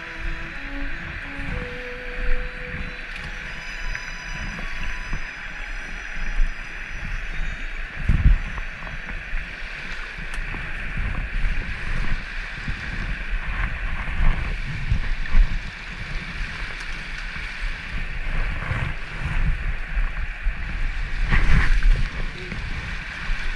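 A mountain stream rushes steadily over rocks.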